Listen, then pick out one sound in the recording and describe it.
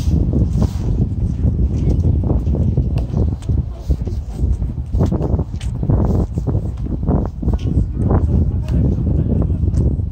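Footsteps tap on a paved path.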